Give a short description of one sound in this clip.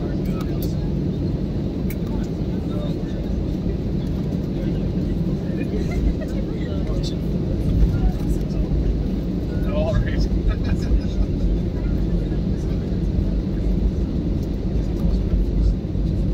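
Jet engines hum low and steady inside an airliner cabin as the plane taxis.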